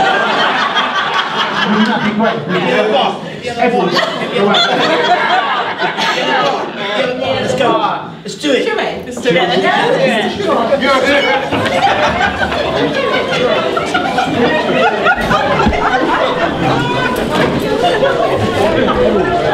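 A crowd of men and women chatter and laugh loudly indoors.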